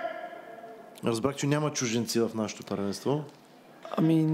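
A young man shouts across a large echoing hall.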